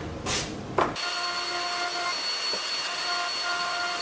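A woodworking machine runs with a steady hum.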